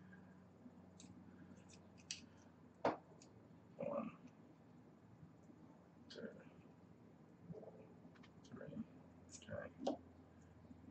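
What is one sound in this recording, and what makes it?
Small metal parts click and tick as fingers handle them.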